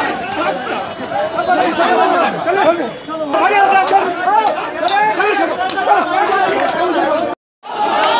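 A crowd of men shout and talk excitedly close by, outdoors.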